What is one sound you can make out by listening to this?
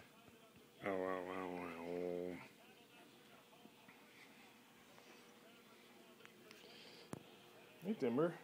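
A dog howls close by in long, wavering cries.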